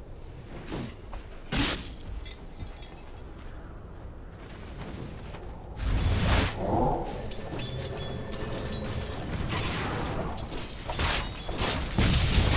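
Magic blasts and sword clashes burst out in a fantasy battle game.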